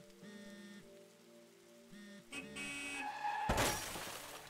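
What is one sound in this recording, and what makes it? A phone rings with a melodic tone.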